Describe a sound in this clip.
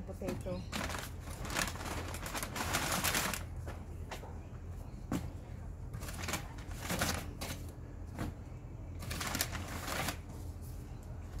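Paper bags rustle as bread is handled.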